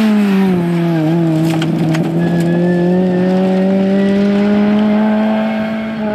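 Gravel sprays and rattles under a rally car's tyres.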